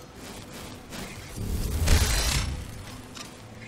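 A magic spell crackles and bursts with a loud rushing blast.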